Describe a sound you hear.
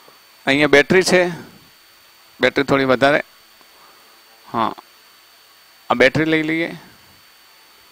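A man speaks calmly through a close microphone, in short phrases with pauses.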